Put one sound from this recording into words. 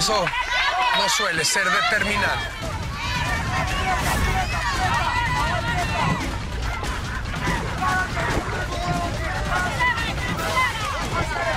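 Men splash through shallow water.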